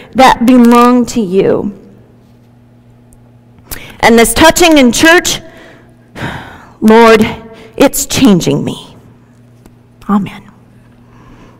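A woman speaks clearly through a microphone in a reverberant hall.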